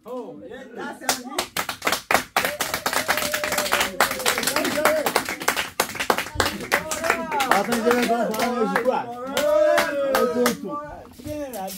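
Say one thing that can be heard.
Several men clap their hands in rhythm.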